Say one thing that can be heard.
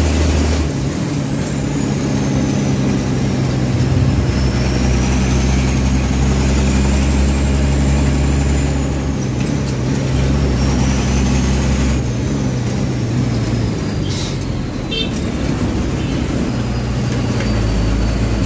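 The vehicle's body and loose panels rattle over the road.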